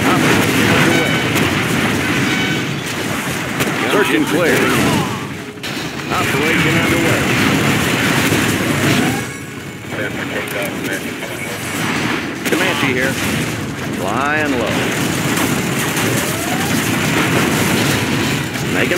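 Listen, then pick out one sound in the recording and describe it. Gunfire rattles in a game battle.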